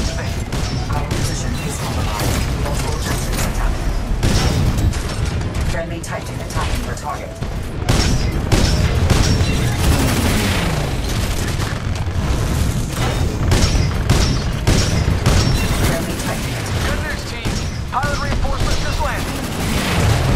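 A heavy gun fires rapid, booming bursts.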